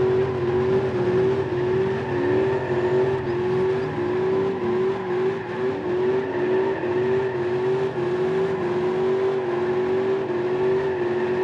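Tyres squeal as a car skids.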